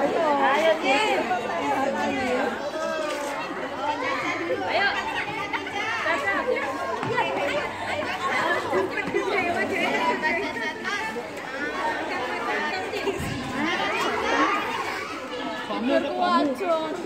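Young children chatter and shout excitedly outdoors.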